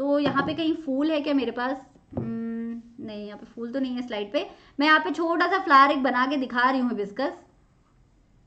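A young woman speaks clearly and steadily into a close microphone, explaining.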